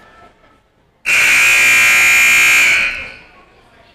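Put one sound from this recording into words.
A loud buzzer blares in a large echoing gym.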